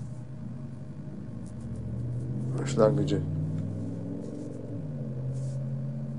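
An elderly man speaks calmly and steadily into a close microphone.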